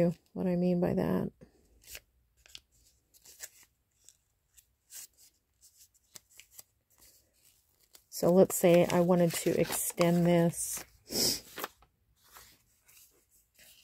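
Paper crinkles and rustles as hands fold it.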